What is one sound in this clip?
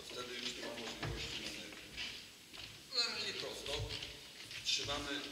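A middle-aged man speaks calmly and explains in an echoing hall.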